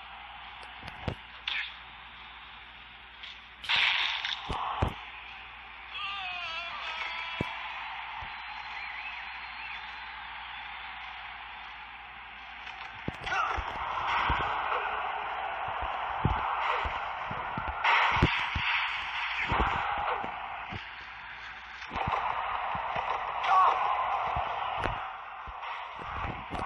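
Blows and body slams thud sharply now and then.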